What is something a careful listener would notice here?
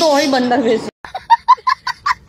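A young child laughs loudly and shrieks.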